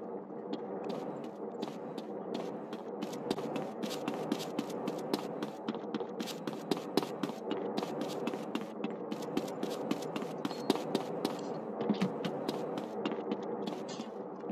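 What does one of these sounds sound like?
Footsteps pound quickly on wooden planks.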